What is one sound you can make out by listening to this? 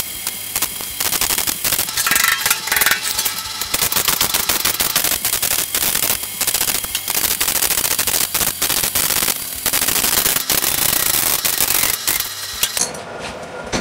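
An arc welder crackles and sizzles on steel.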